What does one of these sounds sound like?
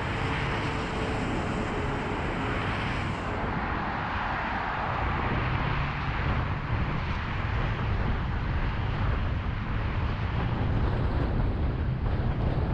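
Heavy traffic roars steadily past.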